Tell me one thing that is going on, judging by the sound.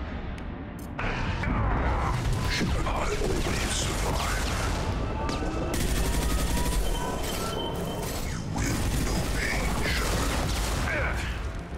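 Explosions boom with fire.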